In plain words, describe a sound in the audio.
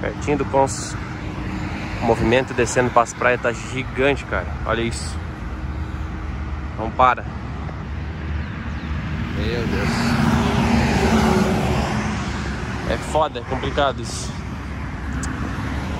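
Cars pass by on a road.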